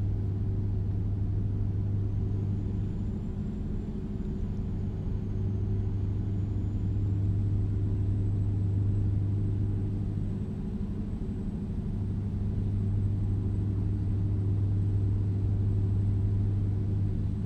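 A truck's diesel engine drones steadily at cruising speed.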